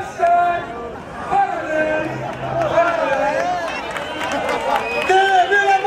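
A large crowd sings loudly together outdoors.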